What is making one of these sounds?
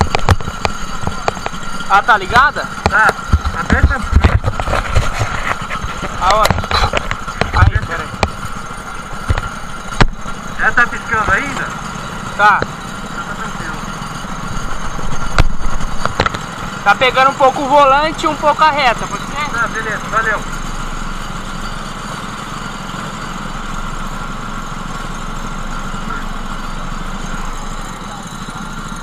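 A go-kart engine drones steadily close by.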